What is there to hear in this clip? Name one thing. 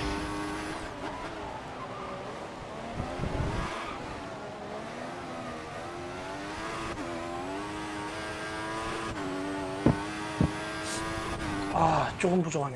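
A racing car engine roars at high revs, its pitch rising and dropping with gear changes.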